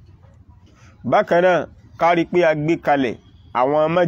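A man recites in a melodic, chanting voice close by.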